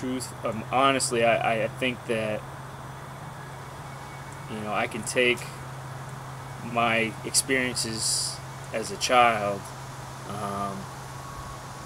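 A middle-aged man talks calmly and close by, with pauses.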